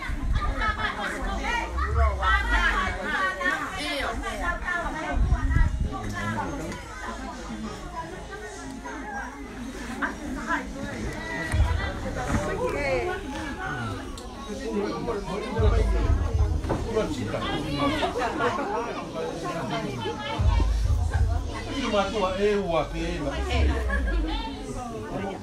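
Several women talk and chatter nearby.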